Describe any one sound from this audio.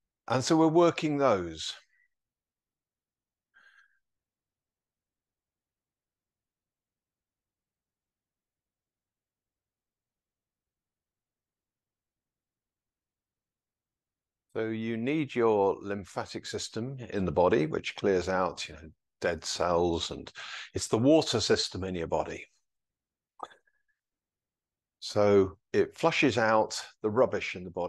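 An elderly man speaks calmly, giving instructions.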